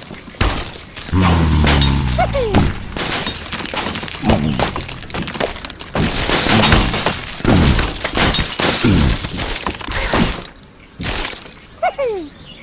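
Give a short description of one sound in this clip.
A cartoon bird squawks as it flies.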